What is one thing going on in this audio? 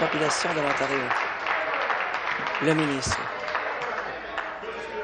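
People applaud in a large hall.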